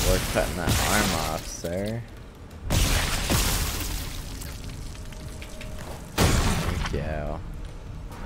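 Heavy boots stomp down hard with wet, crunching thuds.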